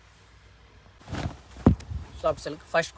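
Silk fabric rustles as it is unfolded and shaken out.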